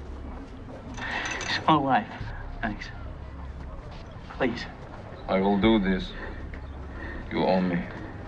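An older man speaks in a low, firm voice up close.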